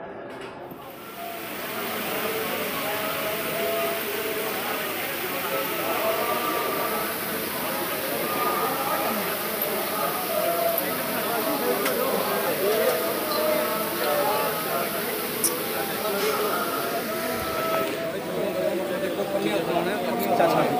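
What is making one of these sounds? A large crowd of men chant and talk loudly close by in an echoing hall.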